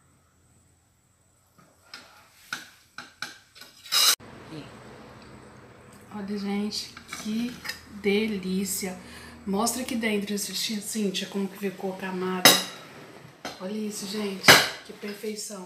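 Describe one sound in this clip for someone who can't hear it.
A metal spatula scrapes and clinks against a glass dish.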